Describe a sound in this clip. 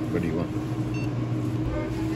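A touchscreen kiosk gives a short electronic beep.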